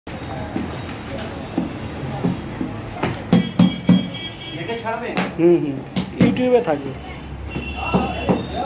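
Stiff paper rustles and creases as it is folded by hand.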